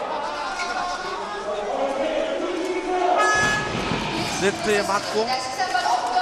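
A volleyball is struck hard during a rally.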